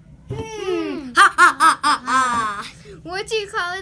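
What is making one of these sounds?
A young boy laughs loudly and shrieks.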